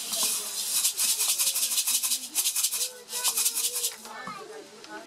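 A clay pot scrapes rapidly against coarse cloth.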